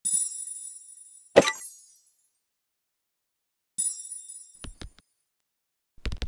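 Bright electronic chimes ring out and fade.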